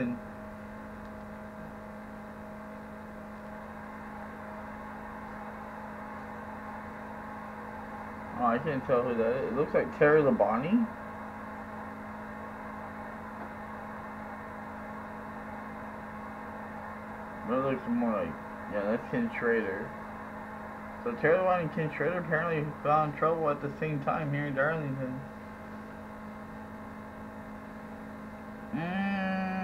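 A racing car engine drones at a steady pitch.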